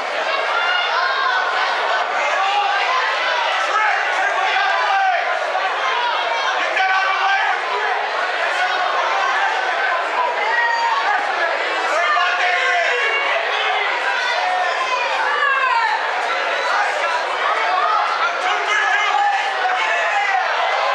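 A crowd of men and women shouts and cheers loudly in a large hall.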